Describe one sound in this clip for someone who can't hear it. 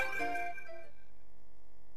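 A short, bright video game jingle chimes and fades.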